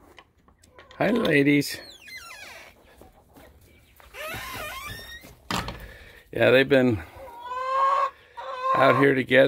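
Hens cluck and squawk loudly close by.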